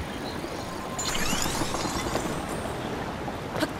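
Ice blocks form with a crackling, chiming sound.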